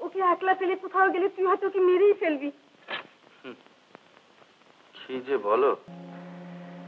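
A woman sings in a high, wavering voice nearby.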